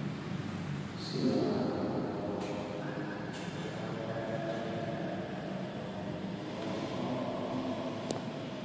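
A man chants in long, drawn-out notes in a large echoing hall.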